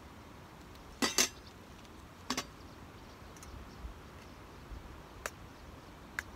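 Metal clanks sharply a few times close by.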